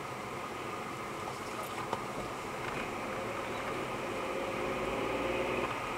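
A lorry rumbles past close by.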